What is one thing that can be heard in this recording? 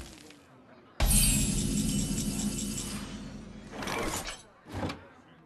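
A bright game chime rings out as a new turn begins.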